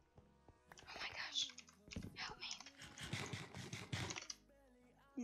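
Crunchy chewing sounds of eating in a game.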